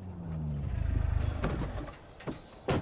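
A car engine hums as it drives.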